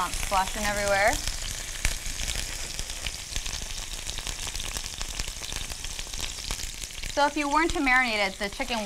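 Chicken sizzles and crackles in hot oil.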